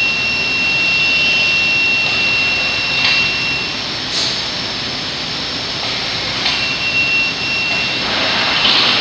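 An electric chain hoist whirs as it lifts a load in a large echoing hall.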